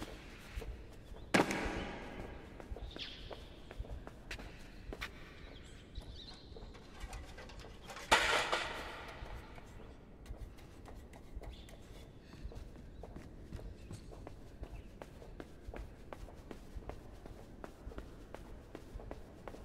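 Light footsteps patter quickly on a hard floor.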